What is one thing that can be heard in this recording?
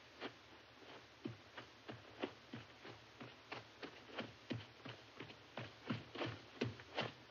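Running footsteps thud quickly across a soft floor, coming closer.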